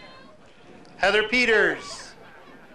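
A young woman cheers and whoops loudly nearby.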